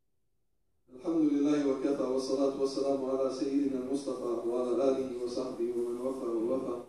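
A middle-aged man speaks loudly and steadily through a microphone in a large echoing hall.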